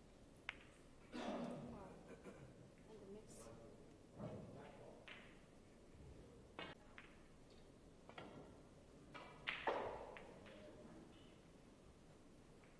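Snooker balls knock together and roll across the table.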